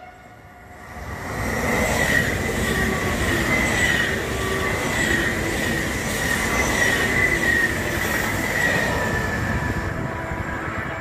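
A high-speed train rushes past close by with a loud roaring whoosh.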